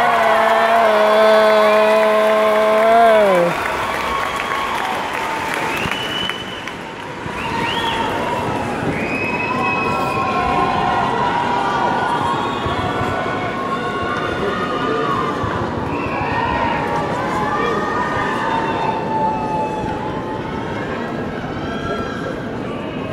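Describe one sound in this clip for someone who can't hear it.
A band plays music loudly in a large hall.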